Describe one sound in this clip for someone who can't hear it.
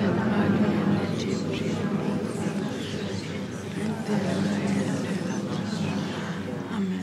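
A crowd of men and women sings together nearby in a low, steady tone.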